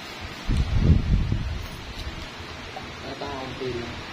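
Nail clippers snip a toenail.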